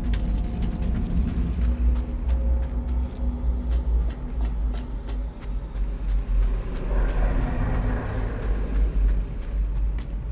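Footsteps thud on a hard floor at a steady pace.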